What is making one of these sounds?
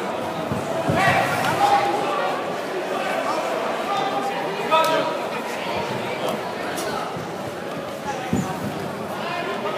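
Kicks and punches land with dull thuds.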